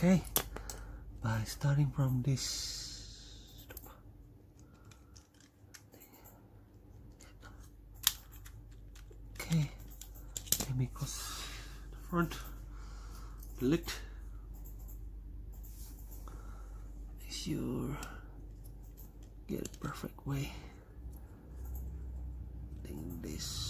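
Plastic parts click and snap together as they are fitted by hand.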